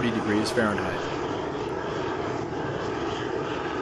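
Water sprays from a hose nozzle.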